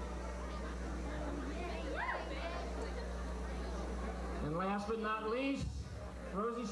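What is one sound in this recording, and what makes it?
A crowd chatters and murmurs in a large room.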